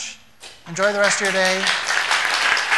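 A young woman in the audience whoops with delight.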